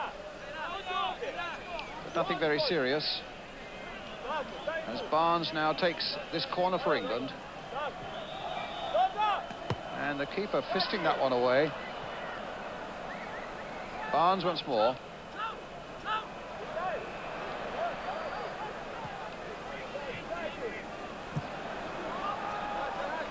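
A large stadium crowd murmurs and cheers in the distance.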